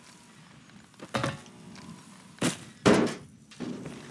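A wooden door creaks open and bangs shut.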